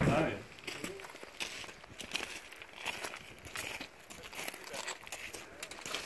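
Boots crunch on loose stones.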